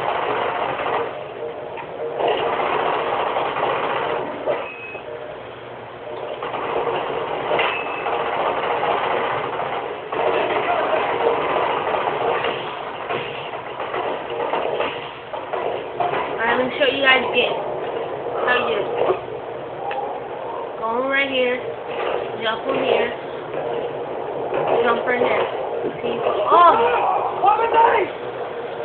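Noisy game sound effects play through a television speaker.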